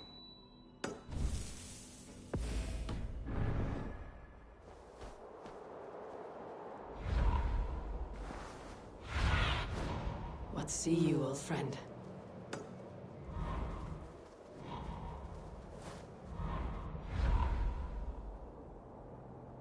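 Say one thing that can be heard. Wind whooshes in loud gusts.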